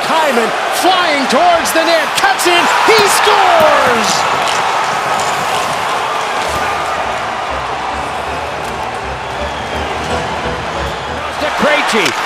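A large crowd cheers and roars loudly in an echoing arena.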